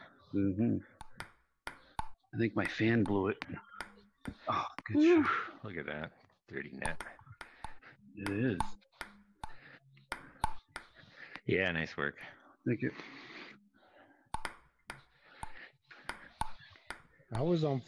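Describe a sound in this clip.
A table tennis ball clicks sharply as it bounces back and forth.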